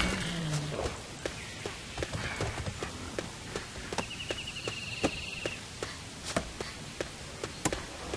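Footsteps patter quickly and evenly on a dirt path.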